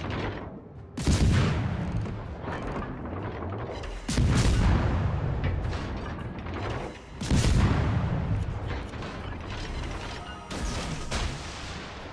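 Heavy naval guns fire in loud booming salvos that rumble away.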